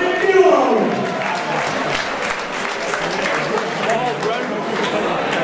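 A crowd cheers and claps in a large room.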